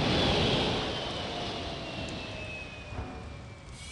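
Steam hisses from a hovering vehicle.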